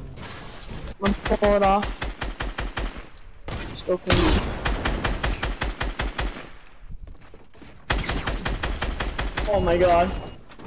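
Rapid gunshots rattle in quick bursts.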